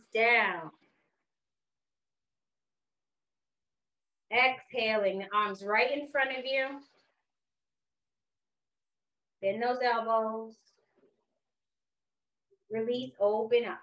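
A woman speaks calmly and slowly, with long pauses, through a microphone.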